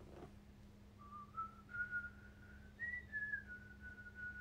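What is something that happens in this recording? A young woman whistles a slow tune close by.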